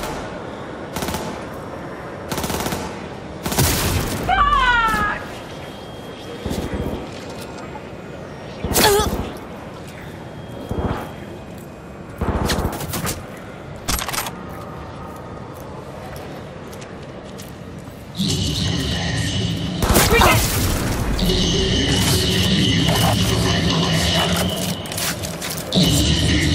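A sniper rifle fires loud single shots.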